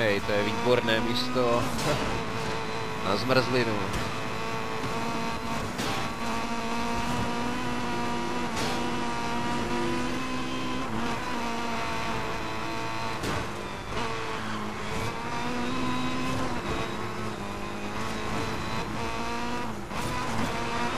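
A racing car engine roars at high revs, rising and falling as the car shifts gears.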